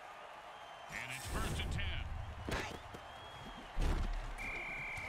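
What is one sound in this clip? Players collide with heavy thuds.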